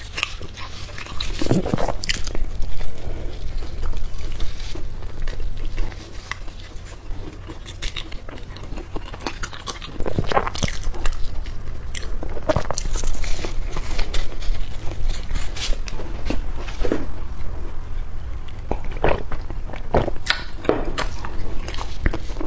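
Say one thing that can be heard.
A young woman chews and smacks her lips noisily close to a microphone.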